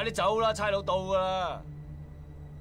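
A man speaks urgently close by.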